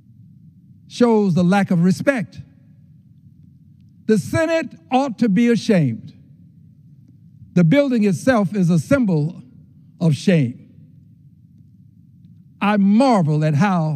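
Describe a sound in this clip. An elderly man speaks deliberately into a microphone, with long pauses.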